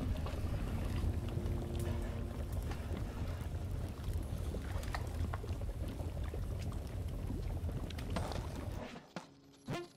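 Lava bubbles with a low, steady rumble.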